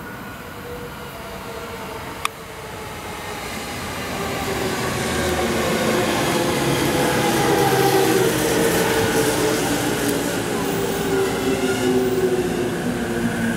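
An electric train approaches and rolls past close by, growing louder.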